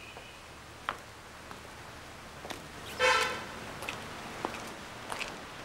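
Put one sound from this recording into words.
A woman's footsteps tap on a hard floor.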